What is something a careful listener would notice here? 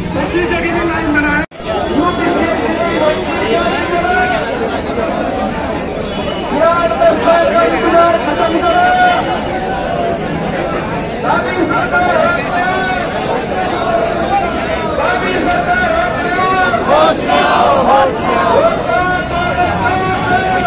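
A large crowd of young men chants and shouts loudly outdoors.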